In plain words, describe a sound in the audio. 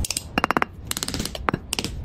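A knife blade scrapes against sand.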